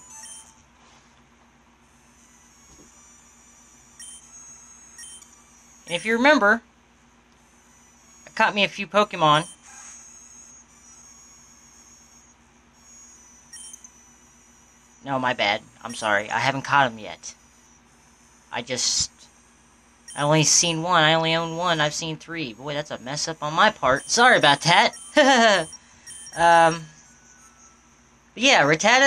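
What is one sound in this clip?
Short electronic menu blips beep.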